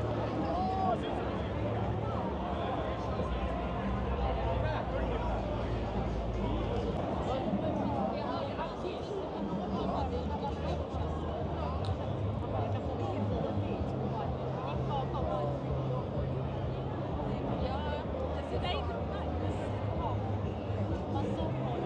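Young women talk casually close by.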